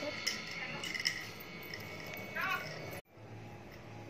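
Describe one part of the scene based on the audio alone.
Bangles jingle softly.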